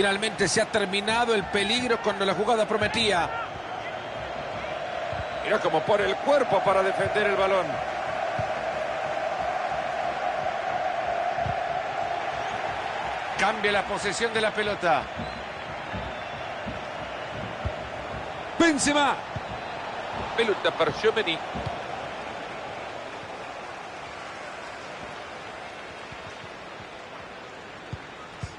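A large stadium crowd roars steadily, fading slowly.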